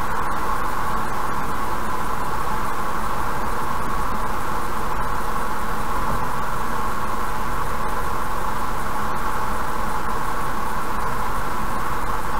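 A car drives steadily along a highway, its tyres humming on the road.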